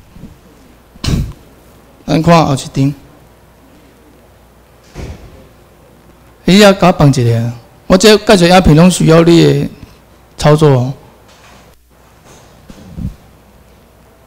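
A man speaks through a microphone and loudspeakers in a large room, in short bursts with pauses.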